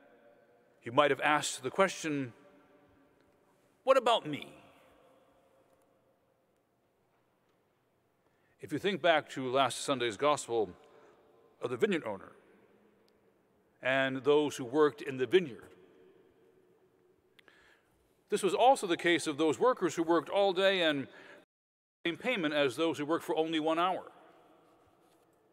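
A middle-aged man preaches in measured phrases through a microphone in a large echoing hall.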